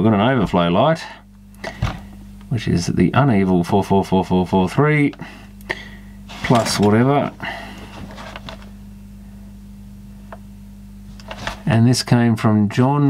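A plastic machine is handled and knocks softly against a hard surface.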